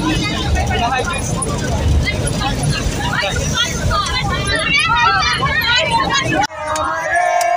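A bus engine rumbles low.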